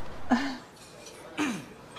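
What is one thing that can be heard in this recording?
A man sniffs loudly.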